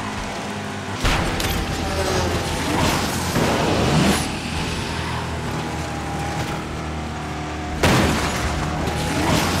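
A nitro boost whooshes loudly.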